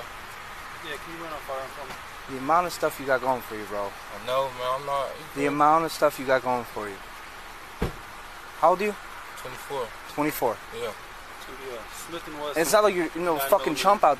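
A man talks nearby in a calm, conversational voice.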